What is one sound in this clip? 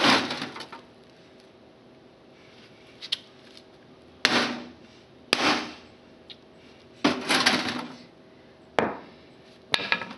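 A sledgehammer thuds against a plastic television case.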